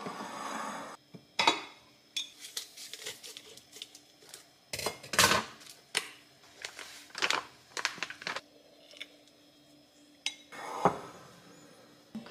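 A lid clacks against a ceramic canister.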